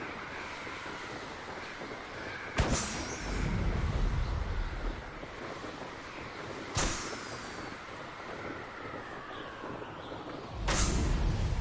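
Wind rushes steadily past during fast flight.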